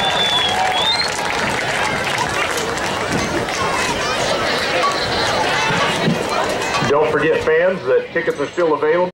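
A marching band plays loudly outdoors, with brass and drums.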